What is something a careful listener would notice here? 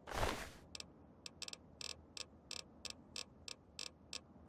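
Short clicks tick quickly one after another.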